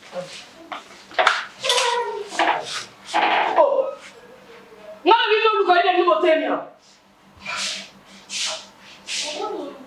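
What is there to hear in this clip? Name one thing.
A woman speaks with feeling, close by.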